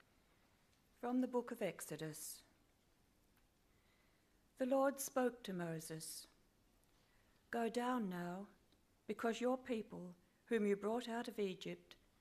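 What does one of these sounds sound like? An older woman reads aloud calmly through a microphone, in pauses.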